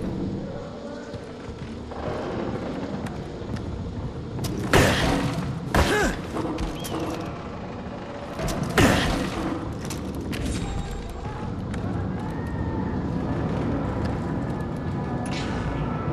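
Footsteps thump on wooden stairs and planks.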